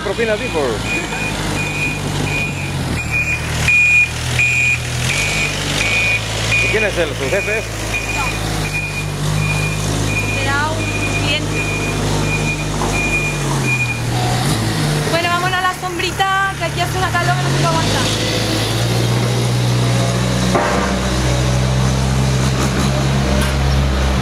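A dumper truck engine rumbles nearby.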